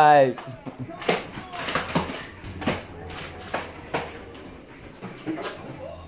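A wheelchair rolls across a wooden floor with soft knocks and creaks.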